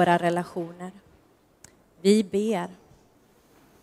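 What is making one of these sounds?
A young woman sings clearly into a microphone.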